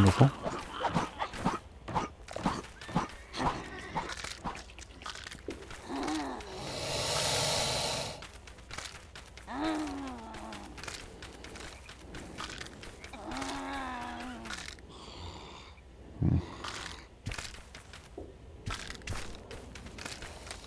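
Quick footsteps patter over rough ground.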